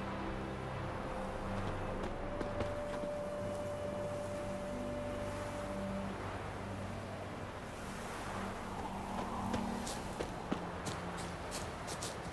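Footsteps crunch along a path and through brush.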